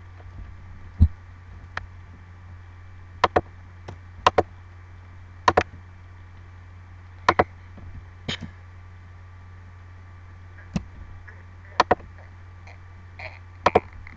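A computer mouse clicks sharply, often in quick pairs.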